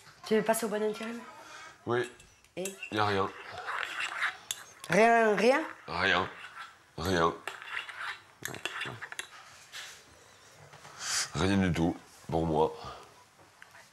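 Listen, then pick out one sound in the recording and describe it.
A middle-aged man talks calmly nearby.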